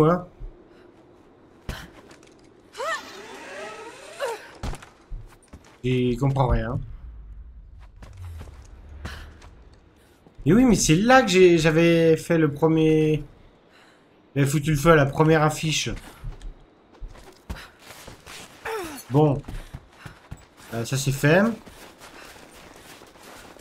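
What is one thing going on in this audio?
Footsteps thud on wooden floors and crunch on snow.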